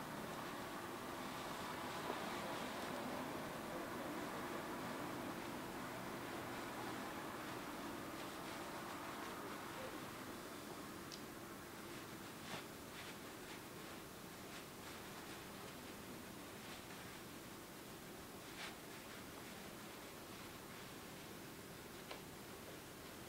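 Fabric rustles softly as a man ties a necktie.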